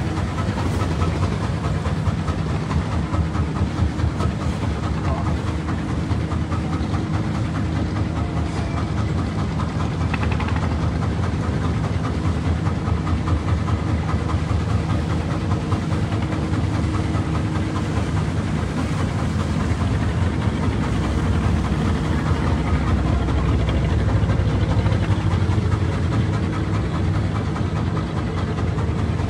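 Wind blows past outdoors on open water.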